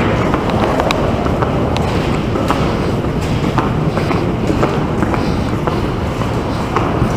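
Footsteps click on a hard floor in an echoing corridor.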